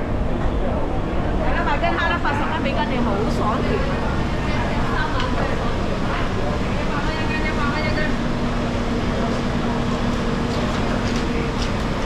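Footsteps tap on a tiled floor.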